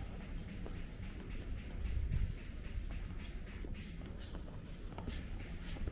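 A person's footsteps tap on cobblestones nearby.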